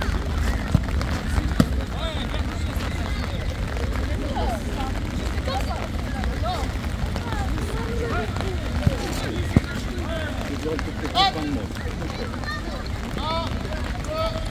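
Children shout and call out across an open field outdoors.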